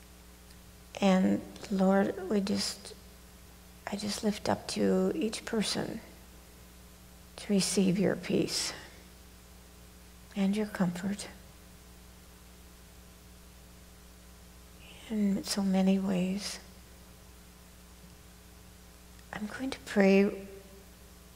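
A man reads aloud calmly in short phrases, heard through a microphone.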